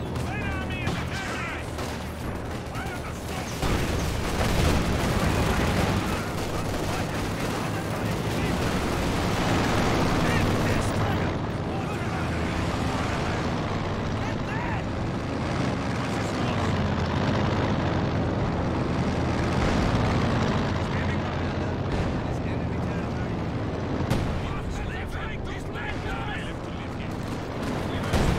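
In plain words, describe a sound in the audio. Gunfire rattles in a game's battle.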